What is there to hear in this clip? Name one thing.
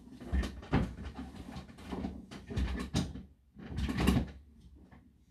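Book pages rustle and thump as they are handled.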